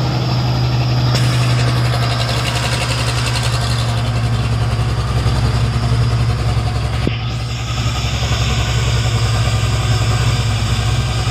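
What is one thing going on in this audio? A heavy truck's diesel engine idles with a deep, steady rumble.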